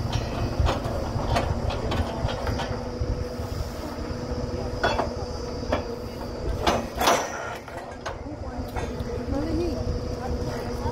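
A drilling rig engine hums steadily outdoors.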